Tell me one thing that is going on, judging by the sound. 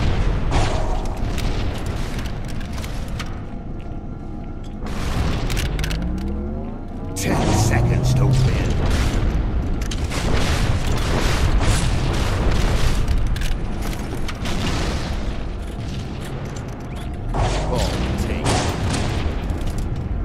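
An energy sword hums and crackles with a swing.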